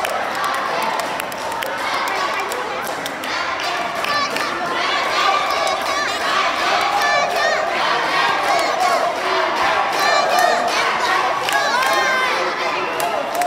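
A crowd of girls chatters and shouts excitedly in a large echoing hall.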